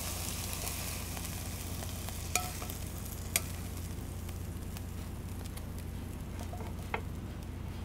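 Food scrapes and clatters as it slides from a pan onto a plate.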